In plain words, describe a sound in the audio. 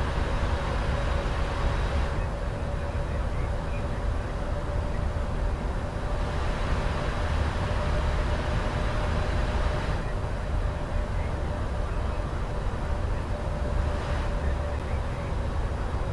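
Jet engines roar with a steady low rumble.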